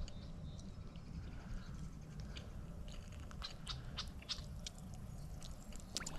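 A fishing reel clicks softly.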